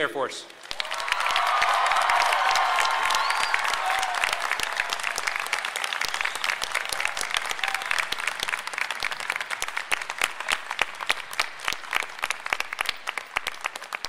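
A large crowd applauds, the clapping thinning out toward the end.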